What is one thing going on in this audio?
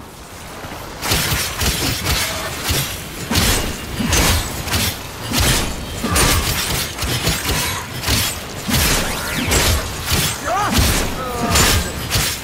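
Game explosions boom and crackle.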